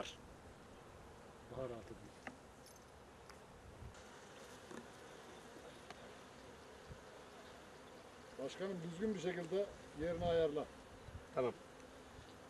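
Bees buzz around honeycomb frames.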